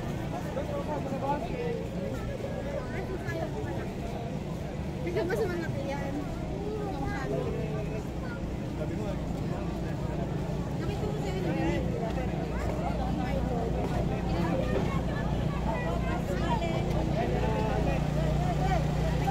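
A crowd of people talks and murmurs outdoors.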